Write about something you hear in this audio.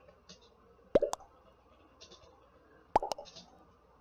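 Short electronic chat pops sound as messages arrive.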